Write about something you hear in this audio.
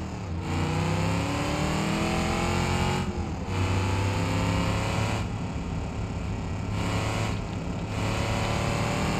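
A car engine revs up repeatedly, dipping briefly as it shifts gears.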